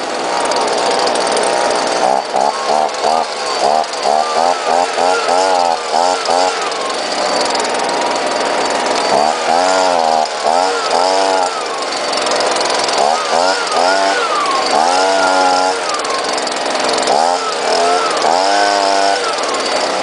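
A leaf blower roars steadily close by.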